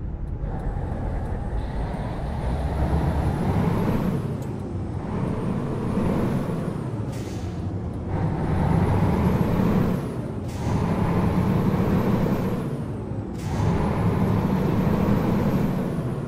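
A truck engine rumbles low and rises and falls as the gears shift.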